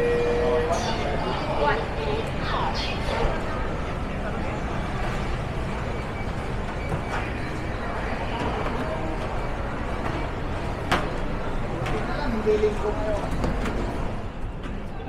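A crowd of men and women chatter nearby in a busy indoor space.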